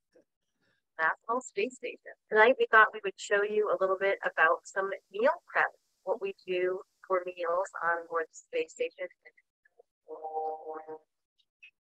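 A woman talks cheerfully to the listener, heard through a recording.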